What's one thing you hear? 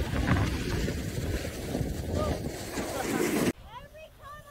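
A snowboard scrapes and hisses over snow.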